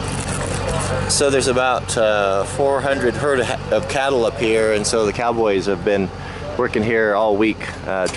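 A man talks close to the microphone, outdoors.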